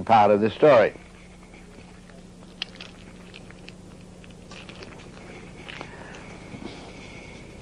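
Paper crinkles softly as it is folded by hand.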